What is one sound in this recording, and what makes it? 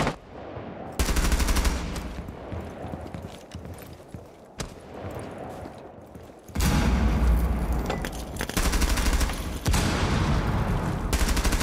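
A rifle fires rapid loud bursts.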